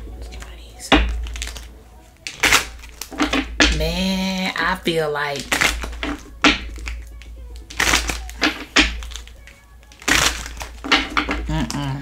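Playing cards shuffle and riffle together.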